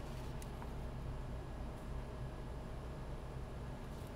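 A pen scratches on paper.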